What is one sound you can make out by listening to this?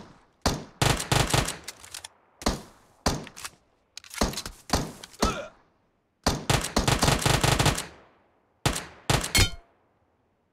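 Rapid gunshots crack out in short bursts.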